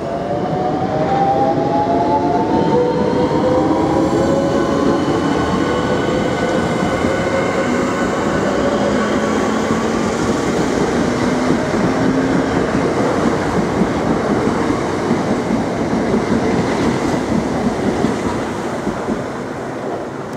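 Train wheels rumble and clatter loudly on the rails close by.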